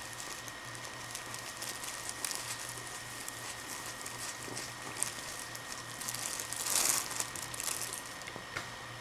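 A plastic bag crinkles and rustles as a cat pushes its head inside.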